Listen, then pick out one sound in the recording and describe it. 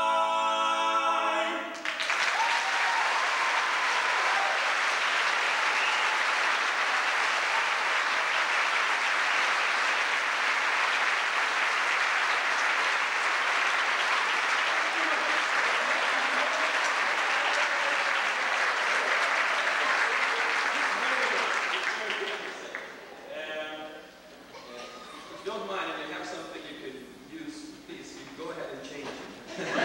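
A group of men sings together in harmony in a large hall.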